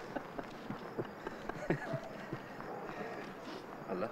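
A man laughs heartily nearby.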